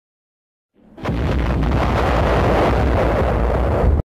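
An explosion booms and rumbles on.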